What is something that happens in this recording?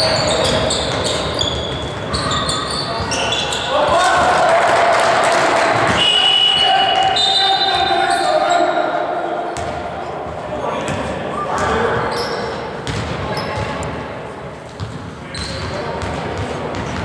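Basketball shoes squeak on a wooden court in a large echoing gym.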